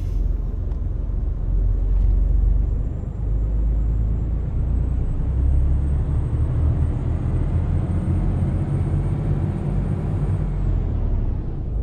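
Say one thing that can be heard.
A heavy truck engine rumbles low and steady as the truck drives slowly.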